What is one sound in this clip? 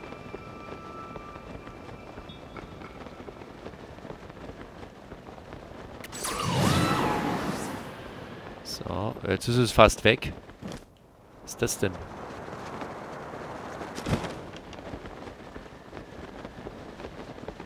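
Wind rushes steadily past while gliding through the air.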